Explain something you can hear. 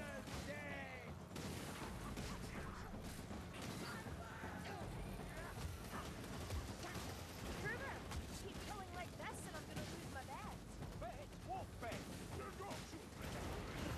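A heavy blade strikes flesh with wet thuds.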